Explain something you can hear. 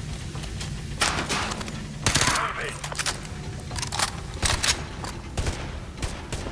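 Rifle shots crack in rapid bursts, echoing around.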